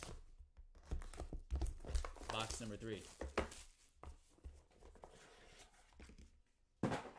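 Plastic wrap crinkles as it is pulled off.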